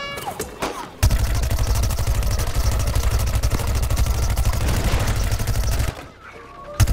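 A rapid-fire video game weapon shoots a fast stream of shots.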